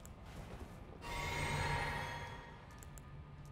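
A sparkling magical shimmer swells up and fades away.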